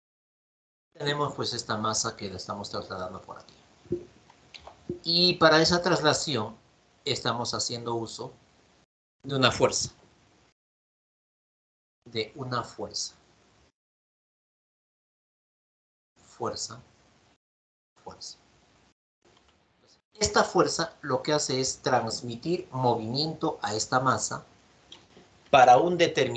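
A man speaks calmly into a microphone, explaining, with pauses.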